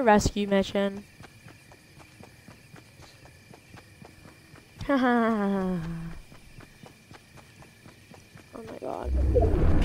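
Quick footsteps patter on grass.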